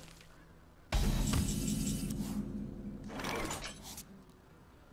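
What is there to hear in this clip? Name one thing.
A game chimes and whooshes as a turn begins.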